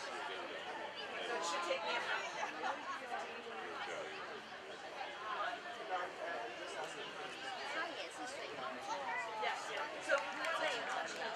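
Young women call out and chatter to each other outdoors.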